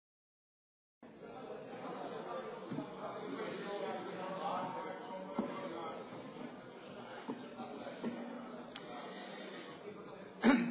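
Many people murmur and talk at once in a large echoing hall.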